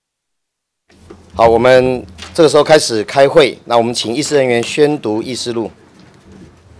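A middle-aged man reads out formally through a microphone.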